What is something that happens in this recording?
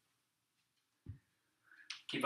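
A kettlebell thuds onto the floor.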